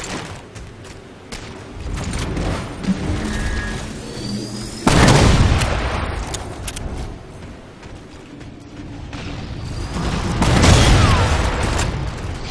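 Rifle gunfire rattles in quick bursts.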